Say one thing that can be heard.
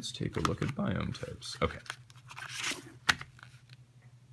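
Paper pages rustle and crinkle under a hand.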